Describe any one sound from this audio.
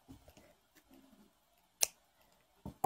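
Scissors snip through yarn.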